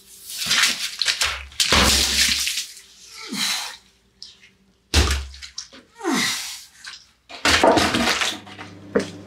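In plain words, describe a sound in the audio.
Boots scuff and thud on a gritty floor.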